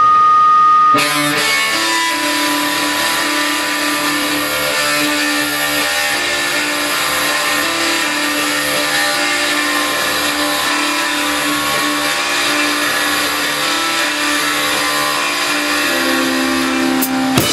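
Drums are played with a steady beat.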